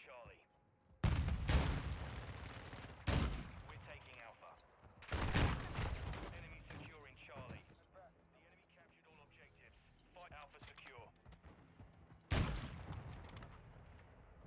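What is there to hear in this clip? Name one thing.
Loud rifle shots boom and echo.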